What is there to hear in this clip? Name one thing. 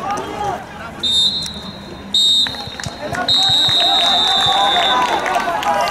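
A referee's whistle blows several shrill blasts.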